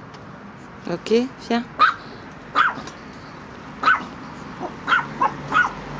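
A puppy yaps in short, high bursts.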